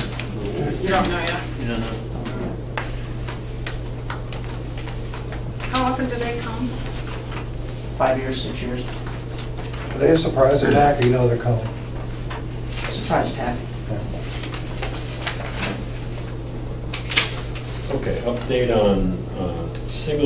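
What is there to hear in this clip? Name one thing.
Adults talk in turns, in short bursts.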